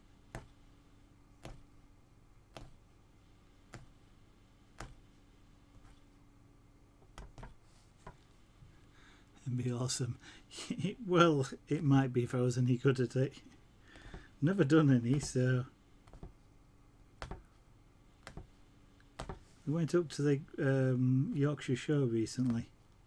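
A punch needle taps and pokes through taut fabric.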